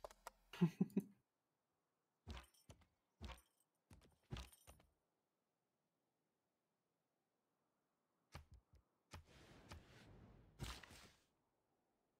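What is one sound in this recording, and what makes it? A young woman talks casually into a close microphone, in short bursts.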